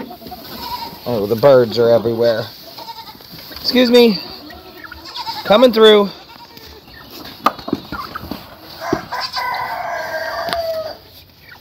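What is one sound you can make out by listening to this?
Chickens cluck and scratch nearby.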